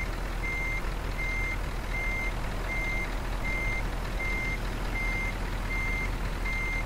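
A truck's reversing alarm beeps at a steady, even pace.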